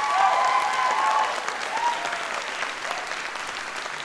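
People in a crowd cheer and whoop.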